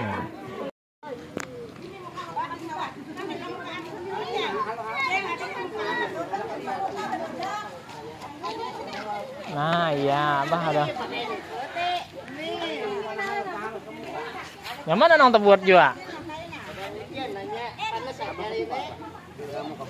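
A group of men and women chatter and call out outdoors.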